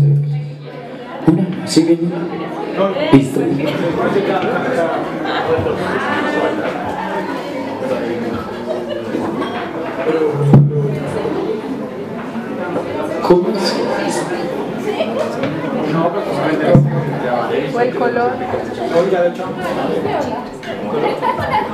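A crowd of adults chatters and calls out indoors.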